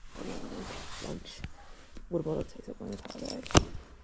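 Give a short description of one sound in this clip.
Items rustle and clunk in a bag.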